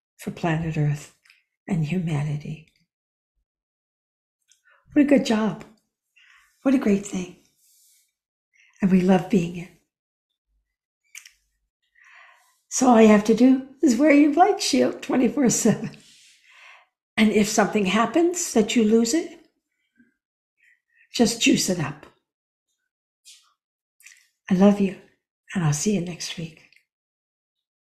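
A middle-aged woman speaks calmly and warmly over an online call, with pauses between phrases.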